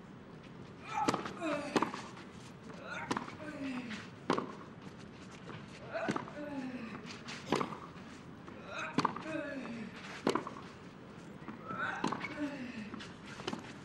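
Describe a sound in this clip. A tennis ball is struck back and forth with sharp pops.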